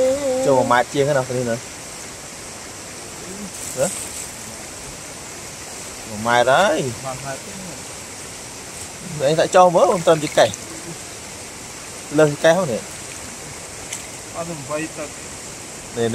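A young man talks in short bursts, close by.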